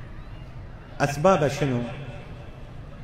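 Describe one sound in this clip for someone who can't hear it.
An elderly man speaks through a microphone with a loudspeaker, with feeling and a slow, drawn-out voice.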